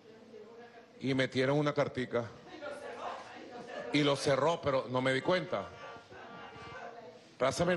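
A man speaks with animation into a microphone, in a slightly echoing room.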